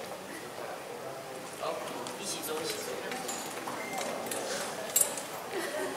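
A young woman speaks through a microphone in an echoing hall.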